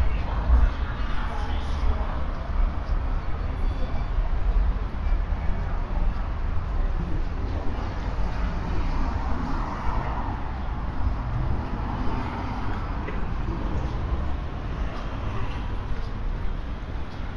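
Wind rumbles across outdoors.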